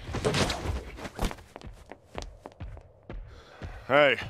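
Heavy metal footsteps thud and clank.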